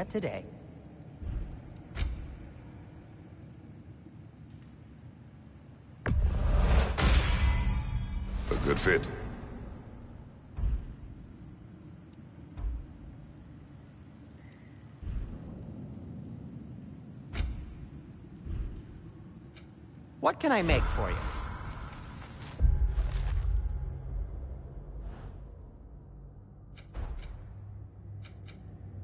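Short game menu clicks and chimes sound now and then.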